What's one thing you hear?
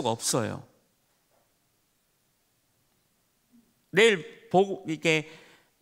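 A middle-aged man lectures with animation through a microphone.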